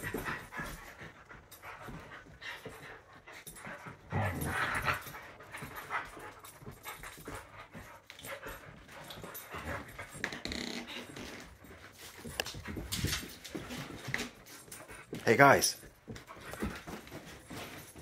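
Dogs grunt and growl playfully up close.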